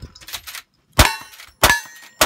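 A shotgun fires two blasts.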